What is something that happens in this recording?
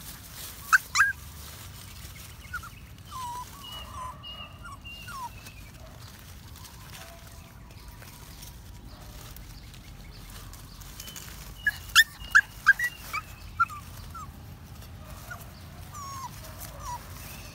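Puppies whimper and yelp in short, high squeals.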